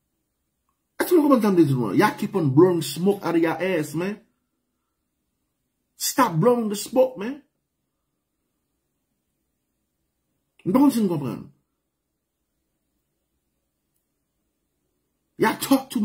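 A man speaks calmly and clearly into a microphone, in short bursts with pauses.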